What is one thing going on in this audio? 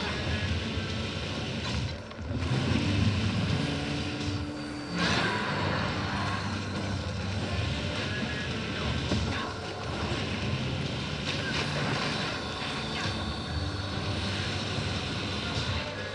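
Magic spells burst and whoosh with loud crackling effects.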